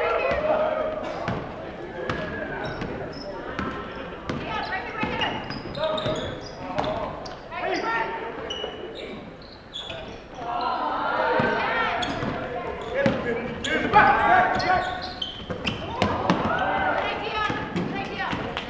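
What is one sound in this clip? Young men call out and shout to each other across the gym.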